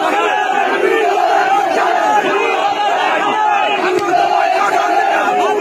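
A crowd of men chants slogans loudly outdoors.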